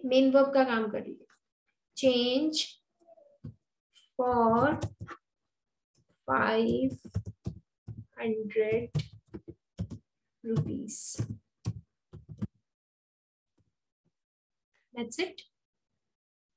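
A young woman speaks calmly and slowly through a microphone, dictating in short phrases.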